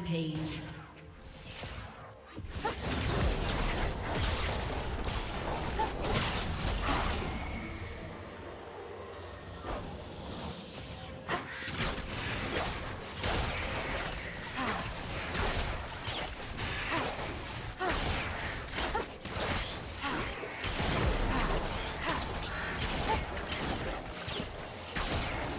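Magic attacks whoosh and crackle in a fast fight.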